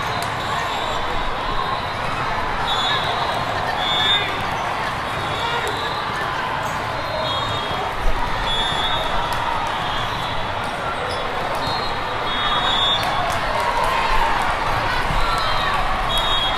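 A crowd of voices chatters and echoes through a large hall.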